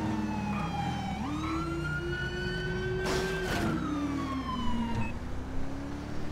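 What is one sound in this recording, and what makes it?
A car engine revs and hums steadily as the car speeds along, its pitch rising and falling.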